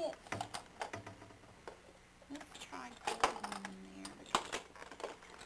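Plastic toy pieces click and clatter in a case.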